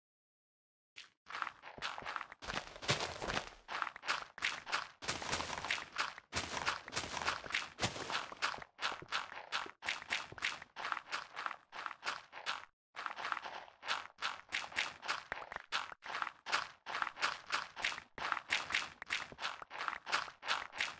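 Rapid crunching thuds of blocks of dirt and stone being dug go on and on.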